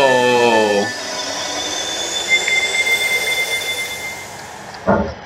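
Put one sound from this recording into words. A shimmering game sound effect rises slowly in pitch.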